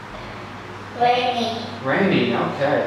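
A young child speaks close to a microphone.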